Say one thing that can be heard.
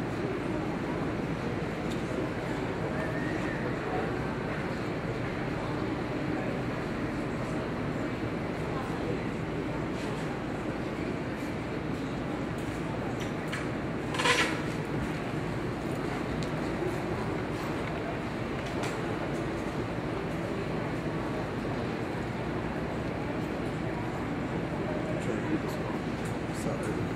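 Horse hooves thud softly on soft dirt in a large echoing hall.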